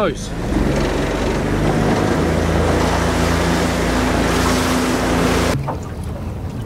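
A boat engine roars steadily.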